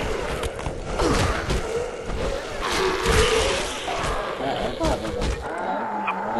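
Heavy blows thud and smack against a body.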